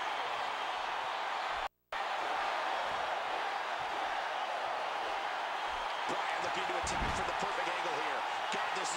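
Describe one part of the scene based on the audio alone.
A large arena crowd roars steadily.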